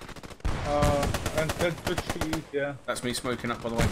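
A rifle clicks and rattles as it is raised.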